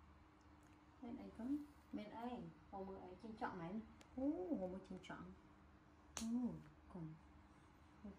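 A young woman talks softly and playfully nearby.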